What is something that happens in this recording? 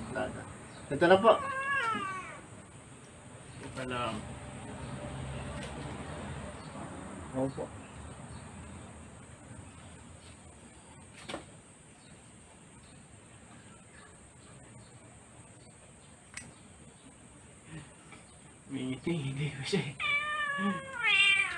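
A cat meows loudly.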